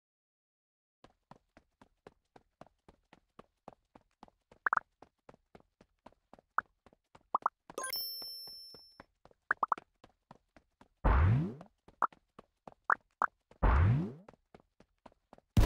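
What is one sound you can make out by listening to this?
Quick electronic blips tick in a steady rhythm.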